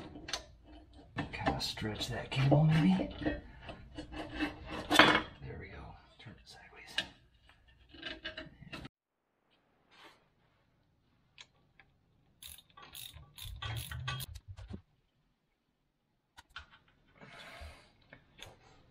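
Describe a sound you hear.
Metal tools clink and scrape against metal parts.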